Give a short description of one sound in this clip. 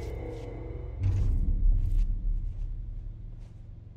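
A mop swishes across a wet floor.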